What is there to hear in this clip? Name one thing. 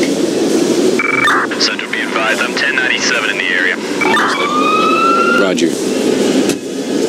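A siren wails and rises in pitch.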